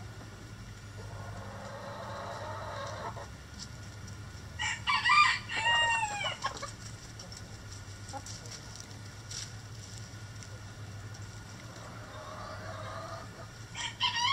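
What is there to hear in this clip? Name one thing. Hens murmur and cluck softly nearby.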